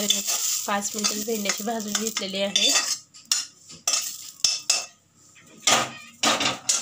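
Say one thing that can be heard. A metal lid clinks against a pan.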